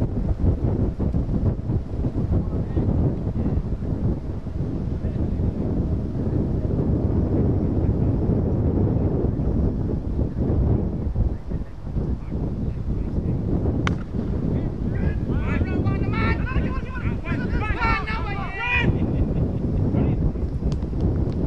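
Wind buffets loudly outdoors throughout.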